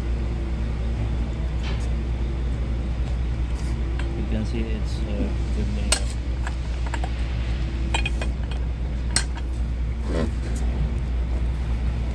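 A wine press ratchet clicks and clanks as its handle is turned.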